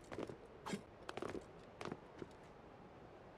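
Hands grip and scrape on rough stone as a figure climbs.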